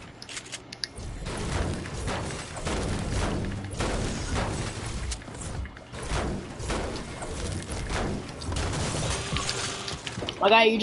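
A pickaxe clangs repeatedly against metal.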